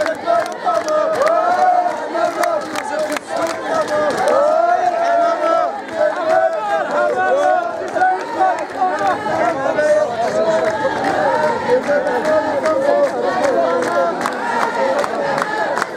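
A large crowd of women ululates loudly and continuously, close by outdoors.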